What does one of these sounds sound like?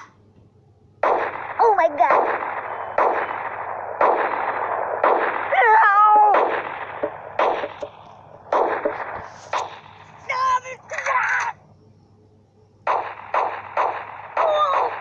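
Cartoon blasts thump and splatter again and again.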